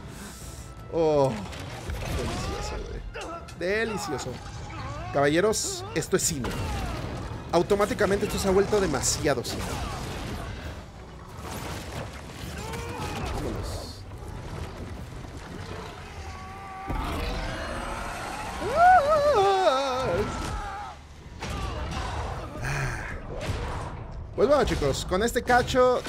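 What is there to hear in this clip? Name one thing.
Heavy blows and thuds strike during a fight.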